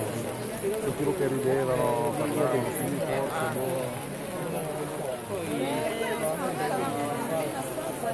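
A large crowd outdoors sings and chants together.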